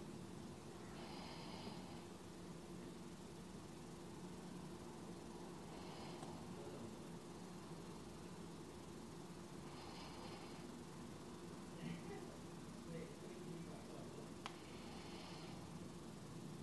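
A woman breathes out softly and slowly, now and then.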